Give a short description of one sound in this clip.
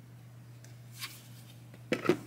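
A plastic container knocks on a countertop.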